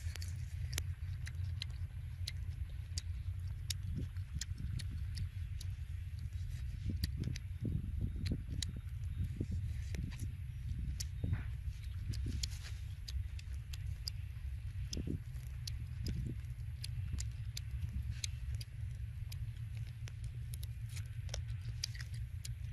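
Embers crackle softly in a small fire.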